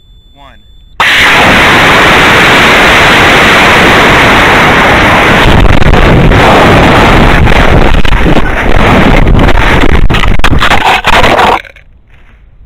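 Wind rushes hard past the rocket as it climbs and falls.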